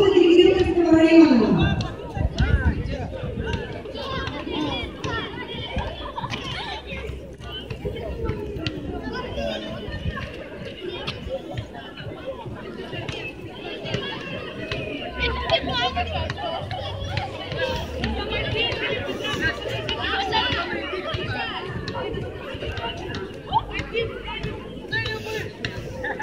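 A large outdoor crowd chatters steadily.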